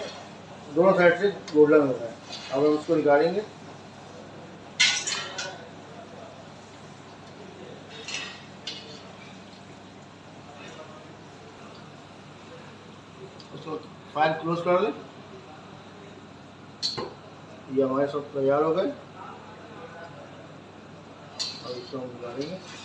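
Oil sizzles and crackles steadily in a frying pan.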